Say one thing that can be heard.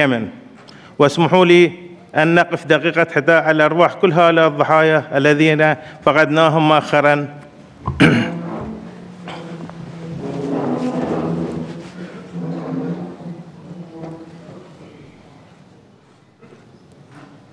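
An elderly man speaks steadily through a microphone in a large echoing hall.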